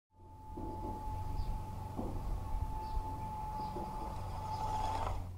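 A small electric motor whines steadily as a toy truck drives along.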